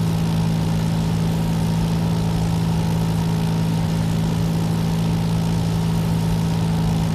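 A small plane's propeller engine drones steadily and loudly.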